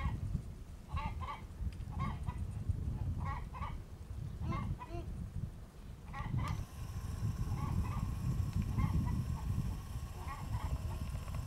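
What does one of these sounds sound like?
Hens cluck in short repeated calls.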